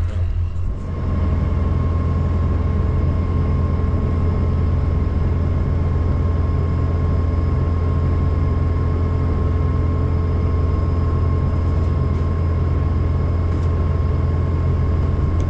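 A combine harvester engine hums steadily and loudly up close.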